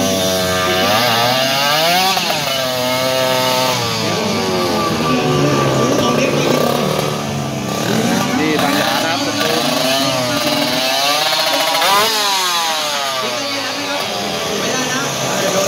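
A small motorcycle engine revs loudly and repeatedly, rising and falling in pitch.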